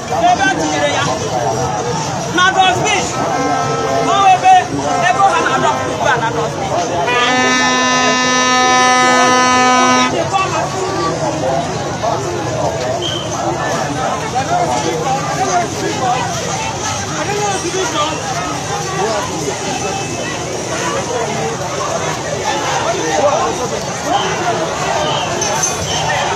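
A large crowd chants and sings together outdoors.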